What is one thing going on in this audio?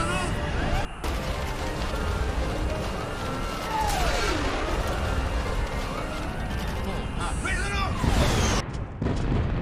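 Jet engines roar loudly.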